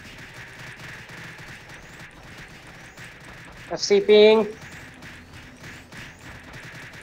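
Game spell effects crackle and zap repeatedly.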